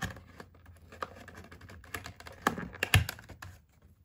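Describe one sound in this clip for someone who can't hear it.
A cardboard box flap tears open.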